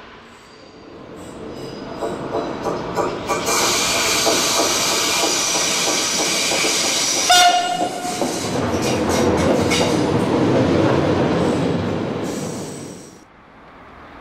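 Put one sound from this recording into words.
A train rolls past close by with a loud rumble.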